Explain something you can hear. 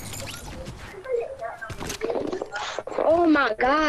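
Footsteps thud up wooden stairs.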